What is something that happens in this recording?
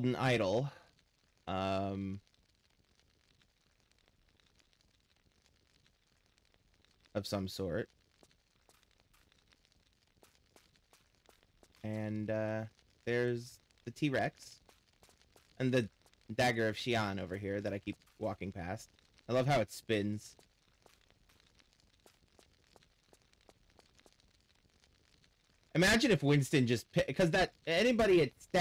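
A young man talks casually into a close microphone, in bursts with pauses.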